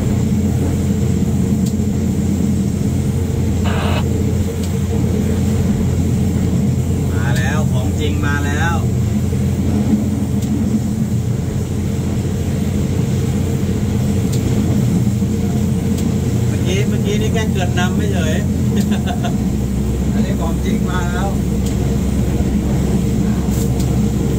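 Wheels clatter over the rails.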